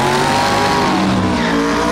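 Tyres screech as they spin on pavement.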